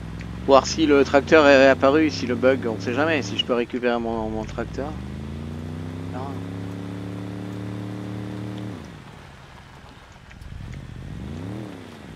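A quad bike engine drones steadily, dropping and revving up again.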